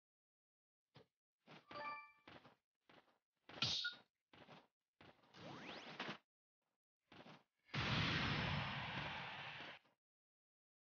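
Game sound effects of fighters swinging swords and landing come in short bursts.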